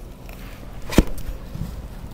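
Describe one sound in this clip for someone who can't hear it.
A thick plant leaf snaps off with a crack.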